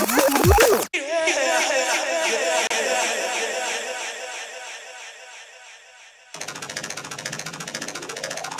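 Electronic dance music plays loudly over a venue's speakers.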